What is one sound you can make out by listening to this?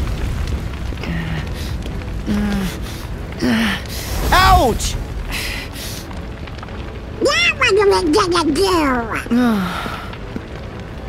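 A young man shouts in a cartoon voice.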